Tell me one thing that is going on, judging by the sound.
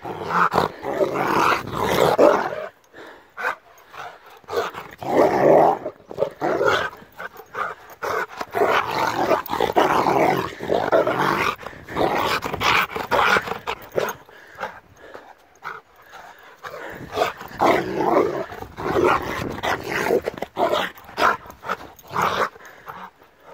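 A large dog barks playfully up close.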